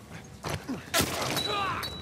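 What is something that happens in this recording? Blows thud in a short, close struggle.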